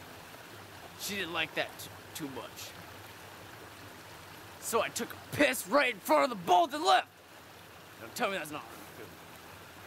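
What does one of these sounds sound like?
A young man talks casually and close by, in short bursts.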